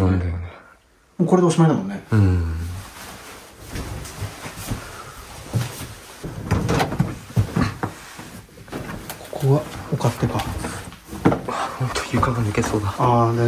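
A young man speaks quietly and in wonder, close by.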